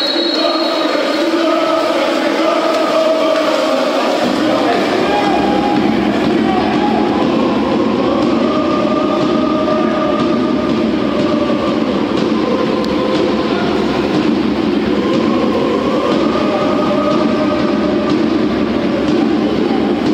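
Players splash and thrash through water in an echoing indoor pool.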